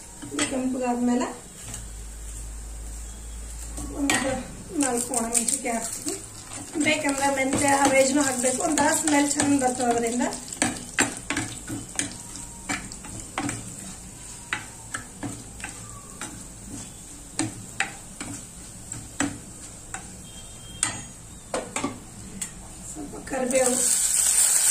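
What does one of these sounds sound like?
Oil sizzles softly in a hot pot.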